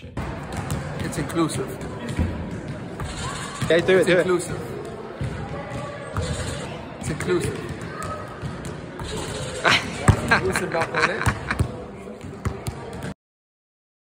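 Basketballs bounce on a hard floor.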